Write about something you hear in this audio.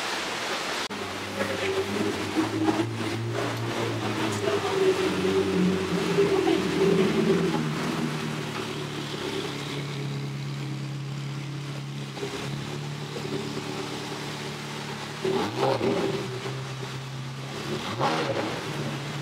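A sports car engine rumbles as the car rolls slowly past.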